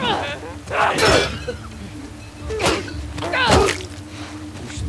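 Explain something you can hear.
Heavy blows thud and smack in a struggle.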